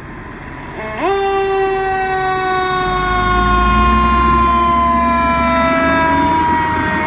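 A fire engine's air horn blares loudly.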